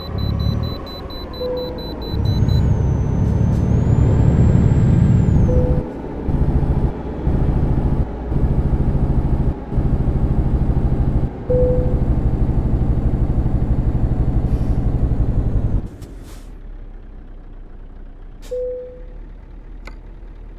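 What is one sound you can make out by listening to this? A truck engine rumbles steadily, then drops to a low idle.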